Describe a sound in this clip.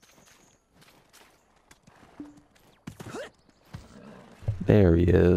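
A horse's hooves clop steadily on the ground.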